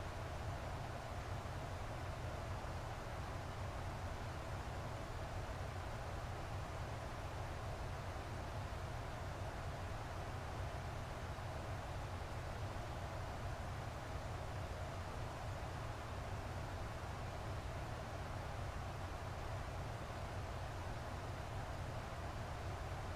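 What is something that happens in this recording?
Aircraft engines drone steadily, heard from inside the cockpit.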